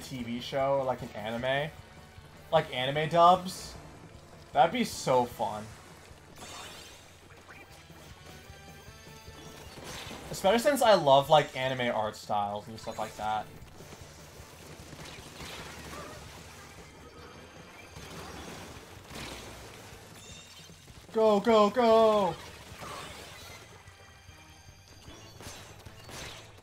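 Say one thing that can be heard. Paint guns spray and splatter with bursts of video game effects.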